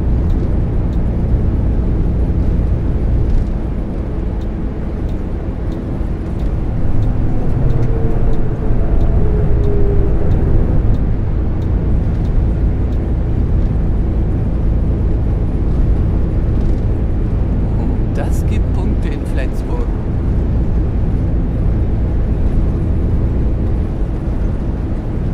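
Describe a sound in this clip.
Tyres roar on a highway.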